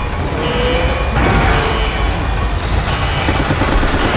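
Gunfire rattles rapidly.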